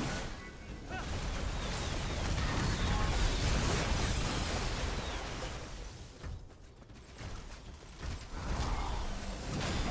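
Spell effects crackle and boom in a fight.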